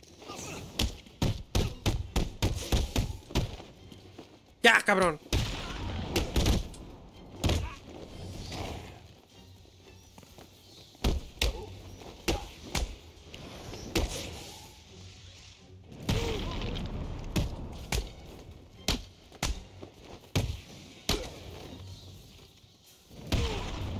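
Punches and blows land with heavy thuds in quick bursts.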